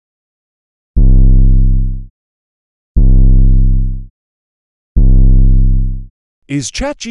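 A deep synthesizer bass note plays three times, each fading out after about a second.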